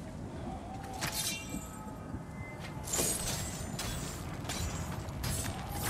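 A metal chain rattles and swishes.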